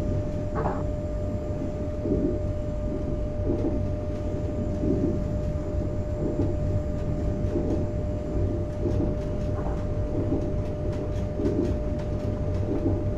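A train rumbles steadily along the rails with a low hum.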